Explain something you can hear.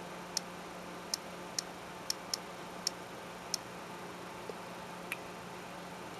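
A touchscreen keyboard gives short soft clicks as keys are tapped.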